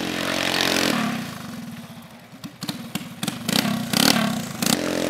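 A small kart engine buzzes and revs close by.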